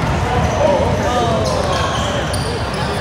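Young players shout in a large echoing gym.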